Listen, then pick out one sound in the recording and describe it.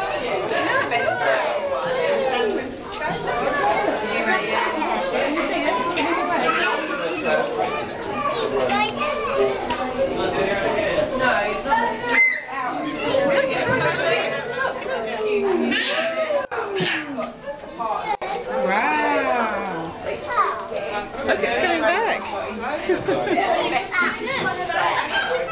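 A crowd of adults and children chatter nearby.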